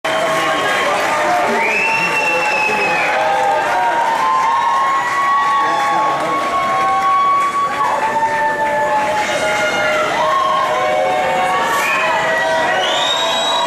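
A live band plays loudly in a large hall, heard from among the audience.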